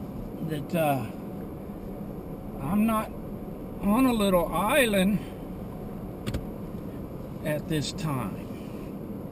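A car's engine and road noise hum steadily.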